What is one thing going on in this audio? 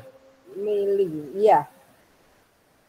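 A young man speaks briefly over an online call.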